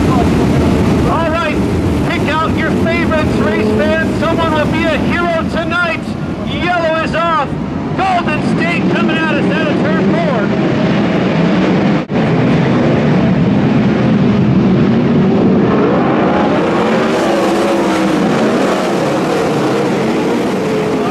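Many racing car engines roar loudly and rev up and down.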